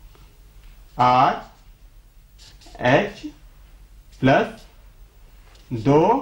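A young man speaks in short, calm phrases close by.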